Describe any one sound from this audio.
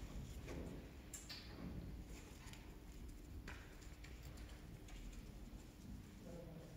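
A small dog's paws patter softly on a carpet.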